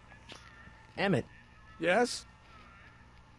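A young man speaks in a lively voice close by.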